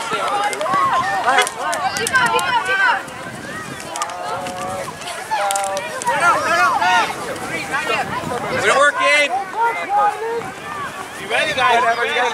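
Adult men and women on the sideline call out and cheer.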